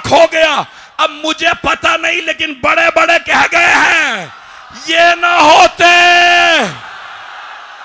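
A man speaks forcefully and loudly through a microphone over loudspeakers.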